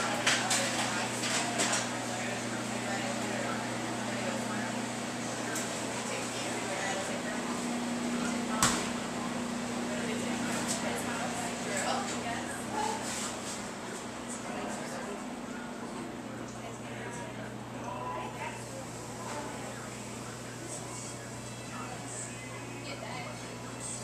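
Equipment hums steadily.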